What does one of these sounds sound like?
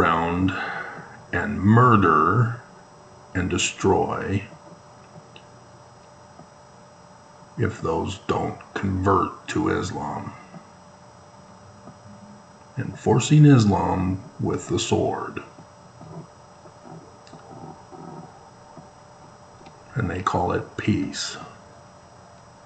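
A middle-aged man speaks calmly and close to a microphone, with long pauses.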